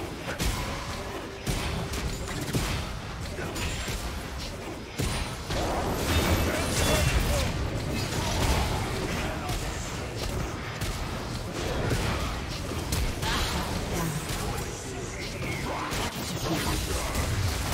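Game spell effects burst and clash in quick succession.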